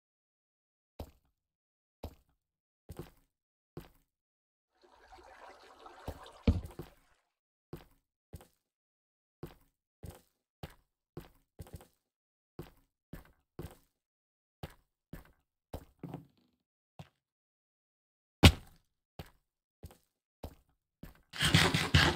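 Footsteps crunch on stone at a steady walking pace.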